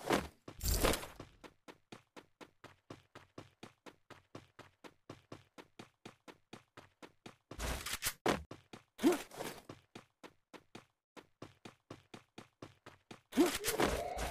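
Footsteps patter quickly and steadily on a hard floor.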